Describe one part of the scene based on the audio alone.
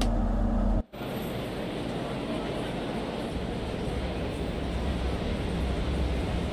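A train idles at a platform outdoors with a low, steady rumble.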